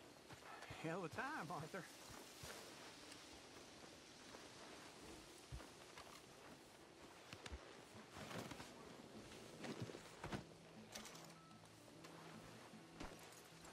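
Footsteps crunch on the ground at a walking pace.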